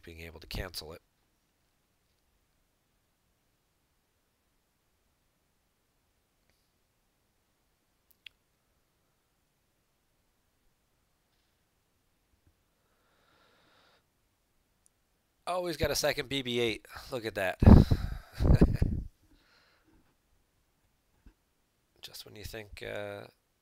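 A young man talks casually and close to a microphone, in short bursts with long pauses.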